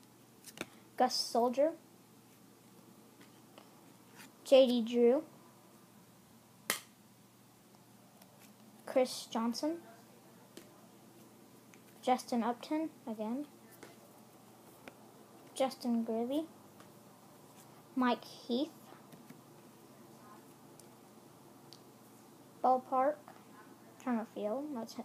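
A young child speaks close to a microphone in short bursts with pauses.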